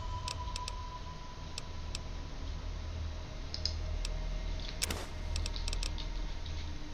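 Short soft clicks tick now and then.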